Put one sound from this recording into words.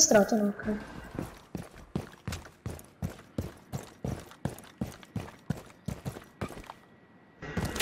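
Footsteps thud quickly and steadily.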